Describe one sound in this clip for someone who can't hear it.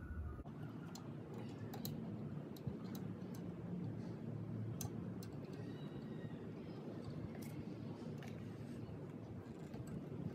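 A small metal screw clicks and scrapes against metal parts.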